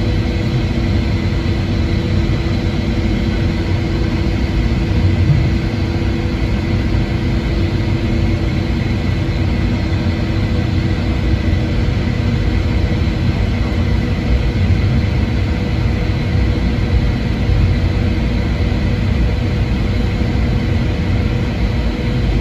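A jet engine roars steadily inside an airliner cabin as the plane taxis.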